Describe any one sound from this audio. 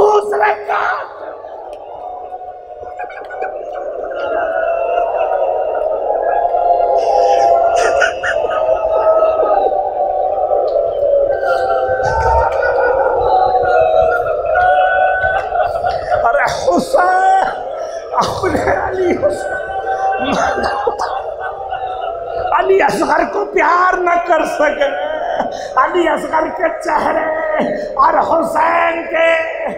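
A man speaks with passion into a microphone, heard through loudspeakers in an echoing hall.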